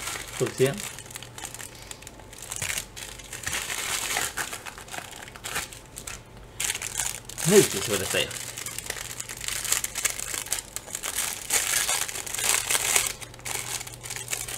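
A plastic bag rustles and crinkles in hands.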